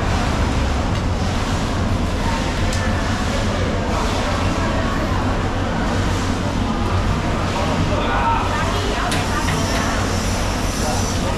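Water gushes from a hose and splashes onto a wet floor.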